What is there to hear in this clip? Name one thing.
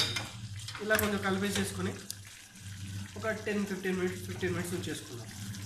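A spoon stirs and scrapes food in a metal pot.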